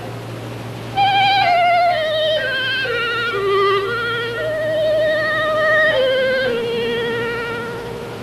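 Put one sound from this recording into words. A boy plays a lively tune on a recorder.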